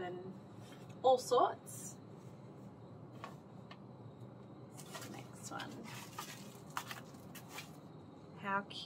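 Shoes and packaging rustle and knock in hands.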